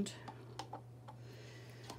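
A palette knife scrapes softly across wet paint.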